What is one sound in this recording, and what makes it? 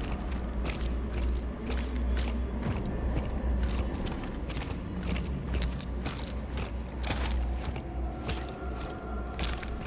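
Heavy armoured footsteps thud and clank on a hard floor.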